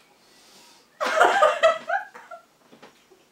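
A young woman laughs loudly nearby.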